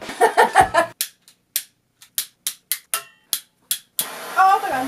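A torch igniter clicks repeatedly.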